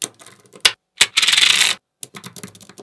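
Small metal magnetic balls rattle and crunch as a hand presses them flat.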